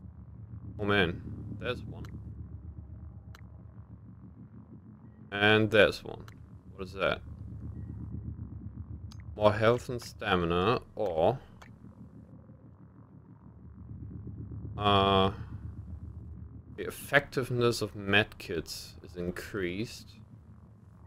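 Electronic menu tones chime as selections change.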